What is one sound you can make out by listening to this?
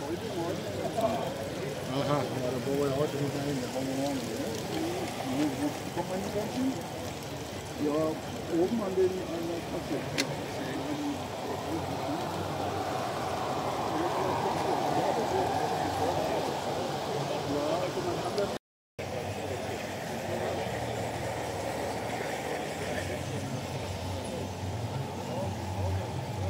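A garden-scale model train rolls along metal track.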